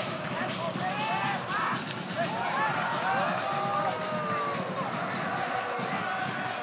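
A large stadium crowd roars and chants outdoors.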